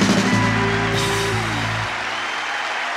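A band of electric guitars and drums plays a final chord that rings out.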